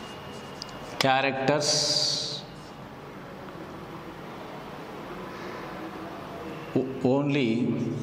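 A man speaks calmly, close by, with short pauses.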